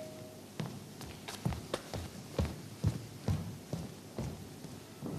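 Footsteps tap across a wooden stage floor.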